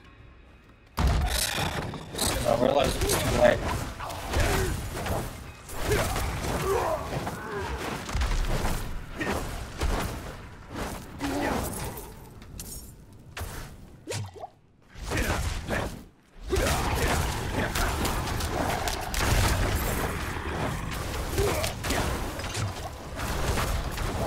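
Weapons clash and fiery blasts burst in a loud fight.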